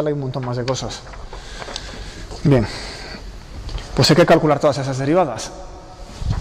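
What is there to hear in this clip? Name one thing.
A man speaks with animation in a slightly echoing room.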